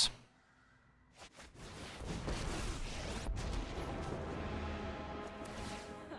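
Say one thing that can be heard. A magical swirling sound effect whooshes.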